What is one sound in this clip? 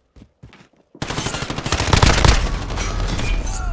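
A gun fires loud rapid bursts.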